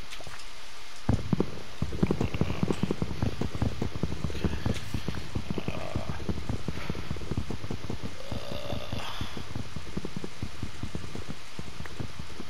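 Wooden blocks are chopped and break with dull knocks.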